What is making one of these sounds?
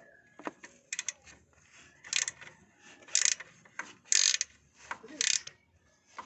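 A ratchet wrench clicks in quick bursts on a bolt.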